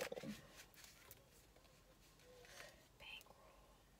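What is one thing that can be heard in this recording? Cards shuffle and flick in a young woman's hands.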